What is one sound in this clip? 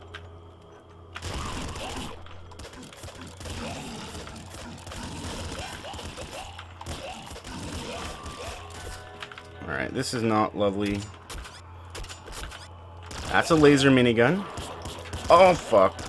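Electronic laser weapons fire in rapid bursts.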